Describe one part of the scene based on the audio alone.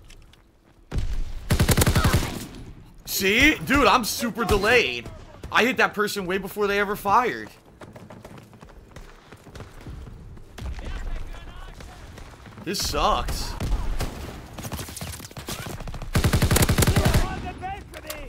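Gunshots crack and echo in quick bursts.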